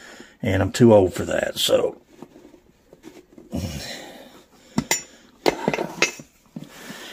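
Metal tire levers click and scrape against a wheel rim.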